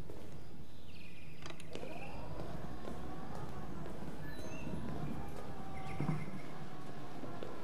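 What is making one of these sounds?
Wheelchair wheels roll across a hard floor.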